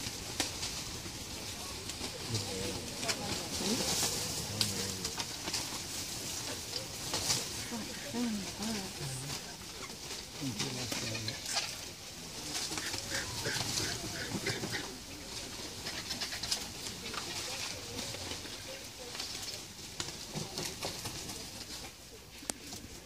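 Vultures hiss and grunt as they squabble over food.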